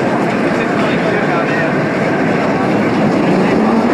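A roller coaster rumbles along its track overhead.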